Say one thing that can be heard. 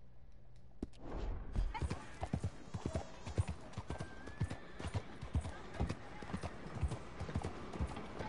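A horse's hooves clop steadily on a dirt street.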